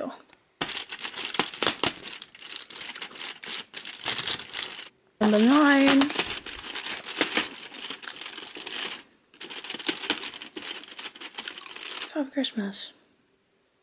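Foil crinkles and rustles as fingers peel it open.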